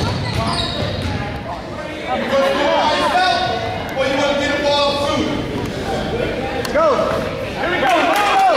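A crowd of people talks and calls out in a large echoing gym.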